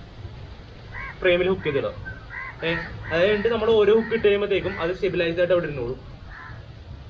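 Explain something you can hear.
A young man talks close by with animation.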